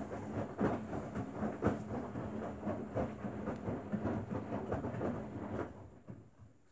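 Wet laundry tumbles and sloshes in a front-loading washing machine drum.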